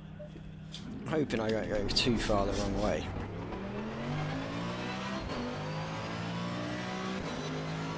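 A race car engine revs up and roars as the car accelerates through the gears.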